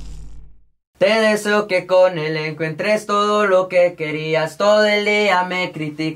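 A young man sings closely into a microphone.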